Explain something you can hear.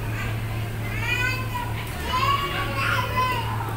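Plastic balls rattle and clatter as a toddler handles them.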